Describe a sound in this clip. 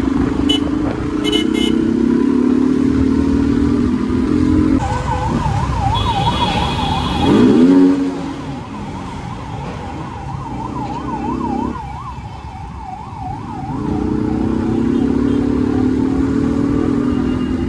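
A motorcycle engine hums steadily up close as it rides along.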